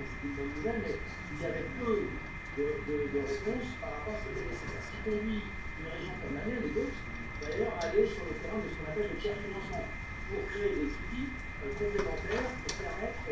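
A man speaks calmly over an online call, heard through a loudspeaker in a room.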